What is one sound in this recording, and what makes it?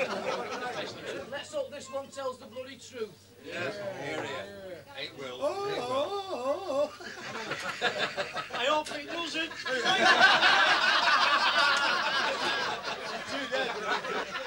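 A crowd of men chatters loudly in a busy room.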